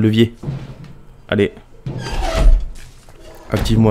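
A metal lever is pulled down with a heavy clunk.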